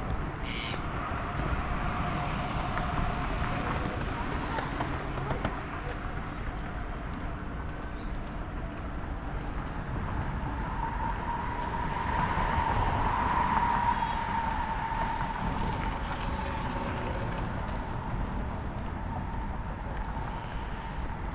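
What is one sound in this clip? Light traffic rumbles past on a nearby road outdoors.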